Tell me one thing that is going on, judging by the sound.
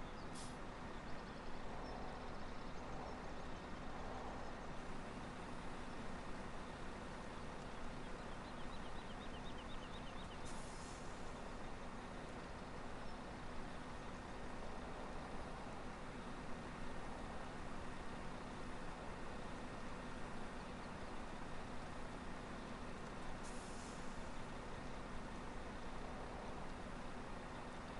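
A combine harvester engine rumbles steadily.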